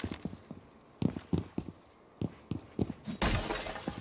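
Glass shatters.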